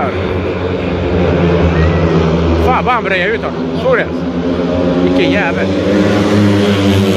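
Motorcycle engines roar loudly as bikes race around a dirt track outdoors.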